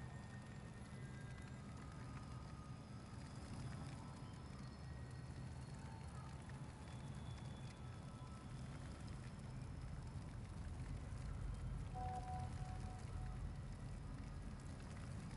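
A torch fire crackles softly nearby.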